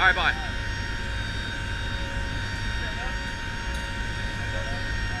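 Aircraft engines drone loudly and steadily all around.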